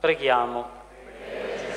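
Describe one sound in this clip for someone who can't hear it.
A man chants through a microphone in an echoing hall.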